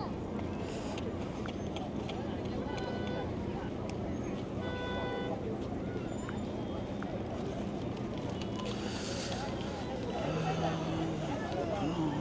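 A crowd chatters and shouts outdoors at a distance.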